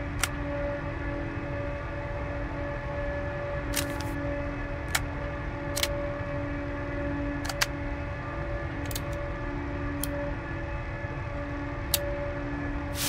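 Short clicks sound as menu items are picked.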